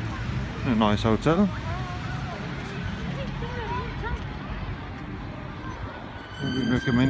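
A child calls out close by.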